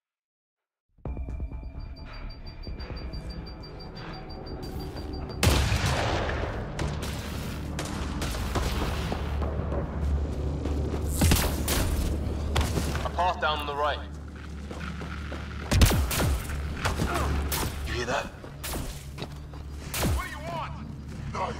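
Heavy footsteps crunch on rough ground.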